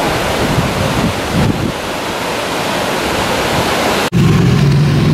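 A river rushes and roars steadily.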